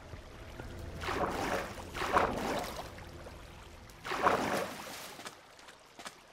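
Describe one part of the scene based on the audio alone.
Water splashes and swirls.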